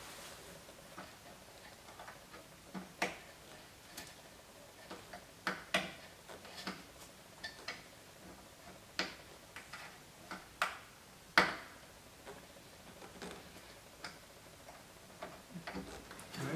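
Fingers press and tap on a hard plastic cover, making light clicks.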